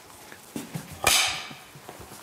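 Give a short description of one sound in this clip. A clapperboard snaps shut with a sharp clack.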